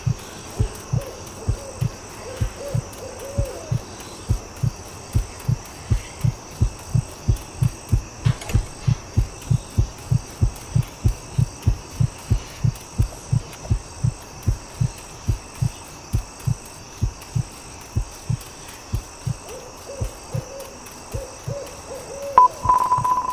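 Footsteps thud steadily and quickly on the ground.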